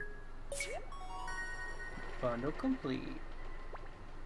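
A bright chiming jingle plays.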